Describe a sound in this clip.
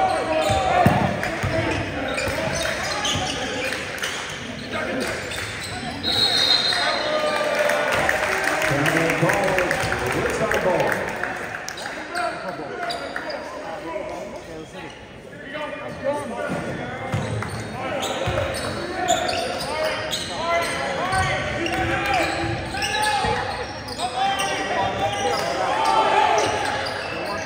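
Spectators and players call out and shout in a large echoing gym.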